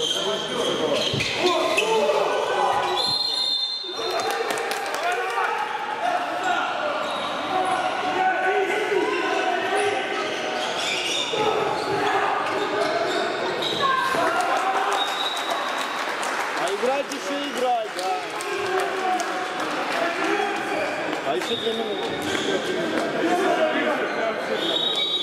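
Sneakers squeak on a hard court floor in a large echoing hall.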